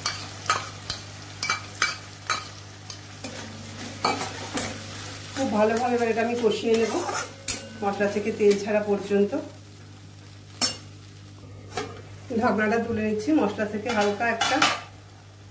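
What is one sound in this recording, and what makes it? A metal spatula scrapes and knocks against a metal wok.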